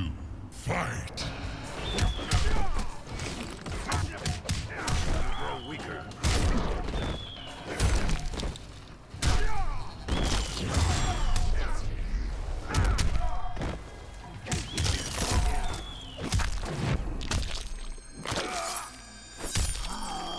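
Fighters grunt and shout as they strike.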